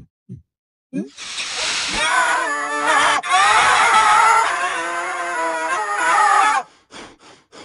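A cartoon cat screams in a distorted, high voice.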